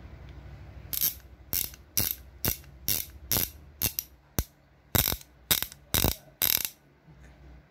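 A ratchet wrench clicks rapidly as it is turned by hand.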